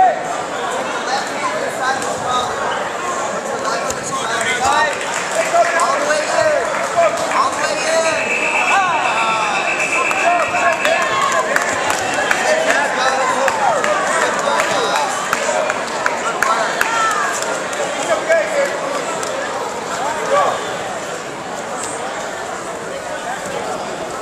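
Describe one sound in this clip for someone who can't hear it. A crowd of spectators talks and shouts in a large echoing hall.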